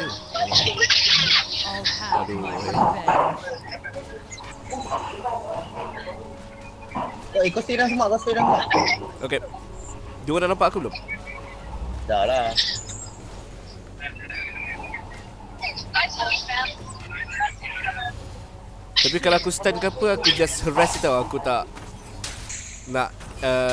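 Spell effects whoosh and clash in a fast fight.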